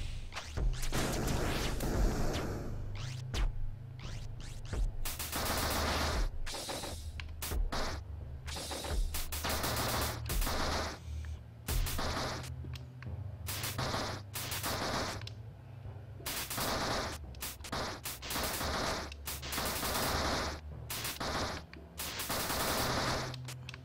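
Game sound effects burst and pop as shots are fired.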